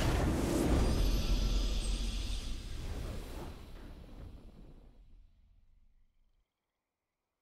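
A triumphant game victory fanfare plays with a deep rumble and slowly fades out.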